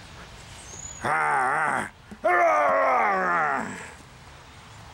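An elderly man lets out long, wavering howls close by.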